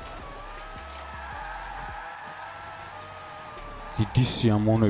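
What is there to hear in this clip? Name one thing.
A car engine whines at high revs.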